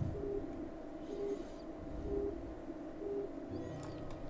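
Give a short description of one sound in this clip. An electronic console beeps softly at a steady pace.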